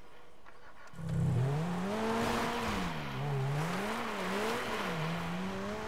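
A sports car engine starts up and roars, revving up and down.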